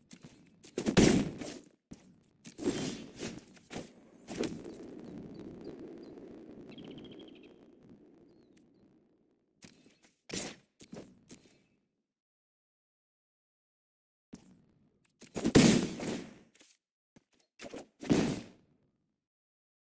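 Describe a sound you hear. Game sound effects chime and whoosh as cards are played.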